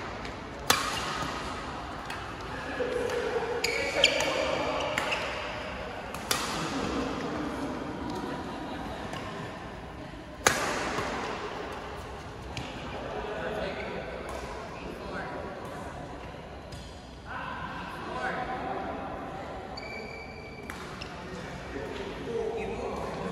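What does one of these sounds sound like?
Badminton rackets smack a shuttlecock with sharp cracks.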